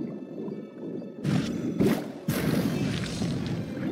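A large thorny plant bursts with a sharp whoosh.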